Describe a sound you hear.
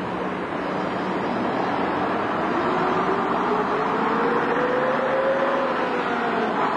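A bus engine rumbles and whines as the bus pulls away close by.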